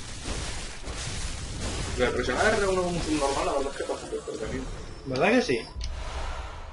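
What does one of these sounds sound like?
A blade slashes into flesh with wet, heavy impacts.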